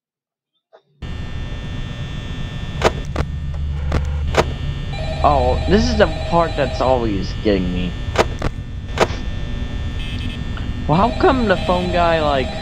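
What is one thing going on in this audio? An electric desk fan hums.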